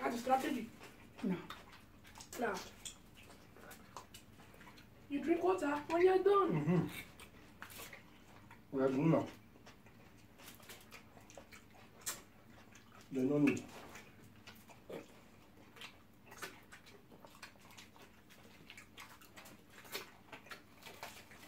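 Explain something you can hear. Foil crinkles and rustles as hands pick at food.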